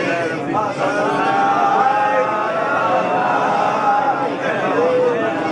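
A man chants a prayer in a clear, sustained voice.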